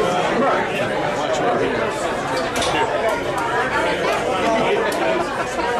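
A crowd of men and women chatter all around, close by.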